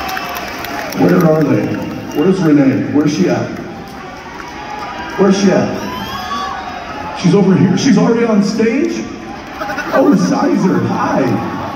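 A man speaks loudly through loudspeakers in a large echoing hall.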